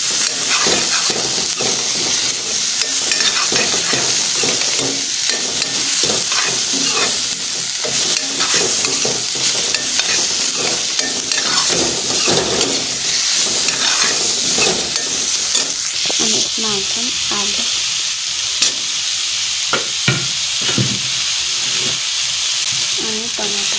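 Vegetables sizzle as they fry in a wok.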